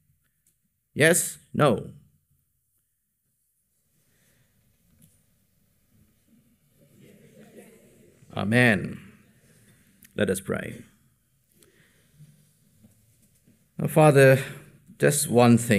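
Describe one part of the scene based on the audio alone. A man speaks into a microphone in short bursts with long pauses.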